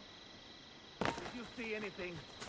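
A body drops into a pile of hay with a soft rustling thud.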